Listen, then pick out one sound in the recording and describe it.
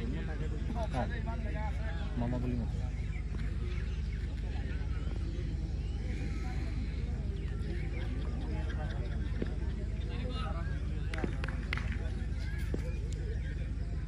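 A crowd of people chatter and call out nearby outdoors.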